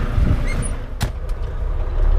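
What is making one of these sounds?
A truck door slams shut.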